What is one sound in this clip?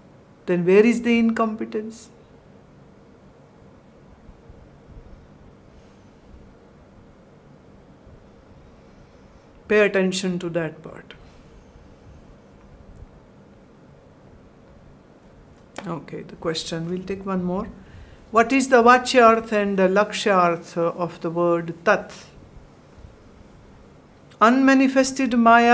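A woman speaks calmly and slowly into a close microphone, with long pauses.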